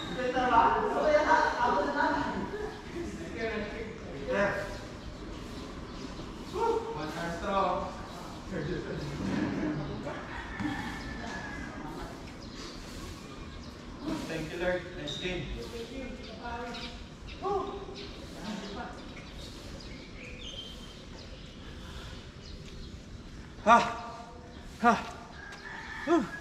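Children shout and call out to each other at a distance, outdoors.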